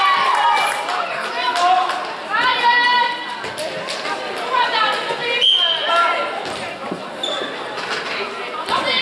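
Sports shoes squeak sharply on a hard floor.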